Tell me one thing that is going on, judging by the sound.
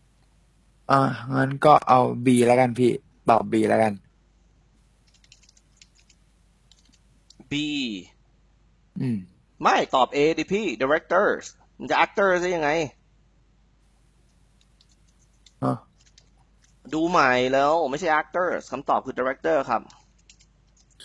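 A young man speaks calmly into a headset microphone, in short bursts with pauses.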